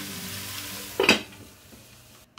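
A metal lid clanks down onto a pot.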